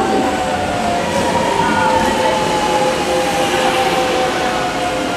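A train's motor whines as it pulls away.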